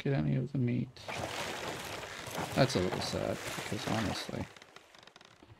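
A large shark crunches and bites into wooden planks.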